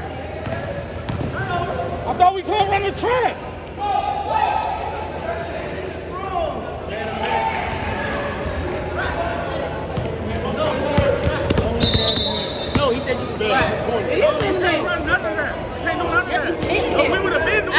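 Basketball shoes squeak on a hardwood court in a large echoing gym.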